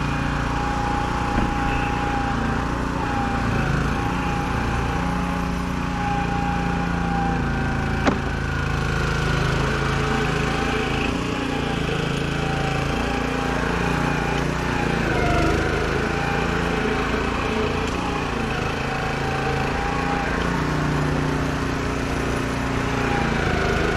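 A lawn mower engine drones steadily nearby, its pitch wavering slightly.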